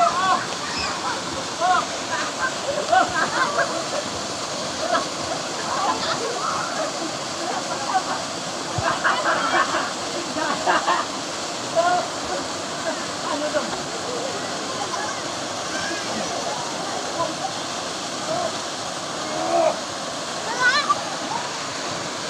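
Young boys shout and call out with excitement.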